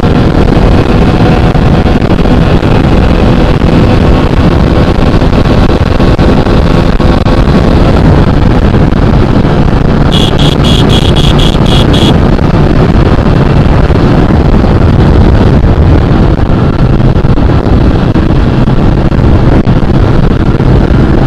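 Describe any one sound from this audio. A single-cylinder motorcycle engine runs hard at high speed.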